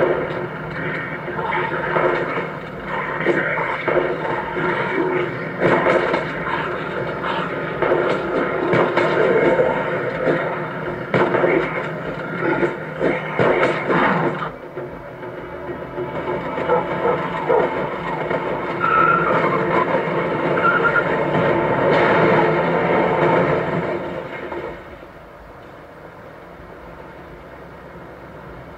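Game music and effects play from a phone speaker.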